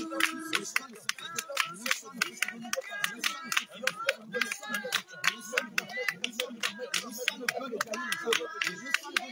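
Hands clap in a steady rhythm.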